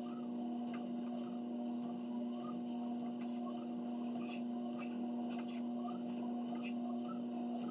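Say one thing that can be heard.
Footsteps thud rhythmically on a treadmill belt.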